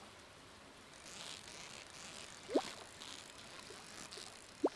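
A fishing reel whirs softly.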